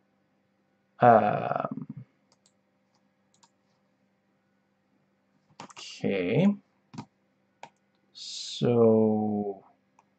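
A man speaks in short bursts through a computer microphone.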